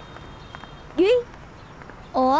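A boy calls out.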